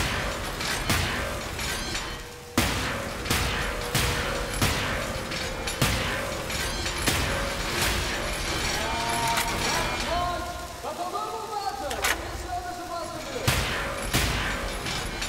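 A gun fires in sharp, repeated shots.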